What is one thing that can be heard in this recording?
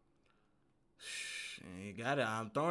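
A young man speaks loudly and excitedly close to a microphone.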